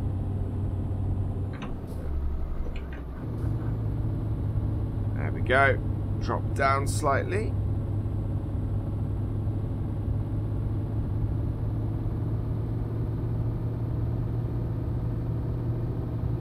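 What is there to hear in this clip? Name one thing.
A truck engine drones steadily, briefly dipping as it changes gear.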